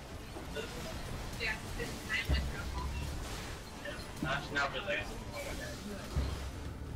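A young woman talks into a microphone.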